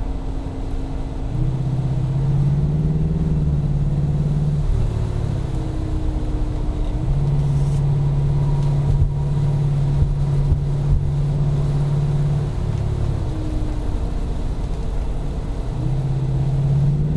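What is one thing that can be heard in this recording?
Tyres roll on smooth asphalt.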